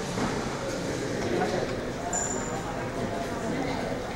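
A group of men chat together in a room.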